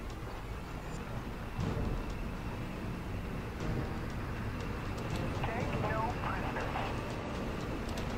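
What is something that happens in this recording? Tank engines rumble and tracks clatter as tanks roll along.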